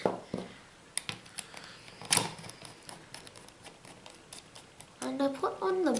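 A screwdriver scrapes and squeaks as it turns a screw.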